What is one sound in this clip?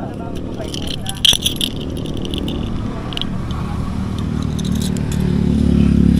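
A fishing reel clicks and ticks.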